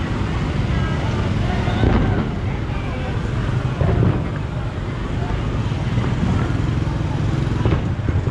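Motorbike engines rumble past close by on a busy street.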